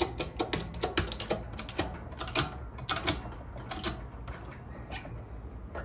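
A steel press clanks and clicks as its handle is worked.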